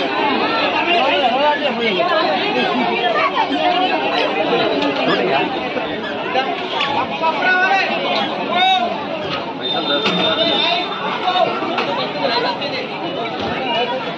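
A crowd of men and women chatters outdoors.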